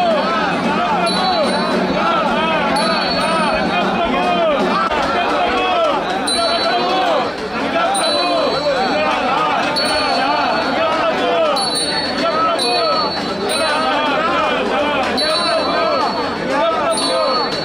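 A large crowd of men chants and shouts loudly outdoors.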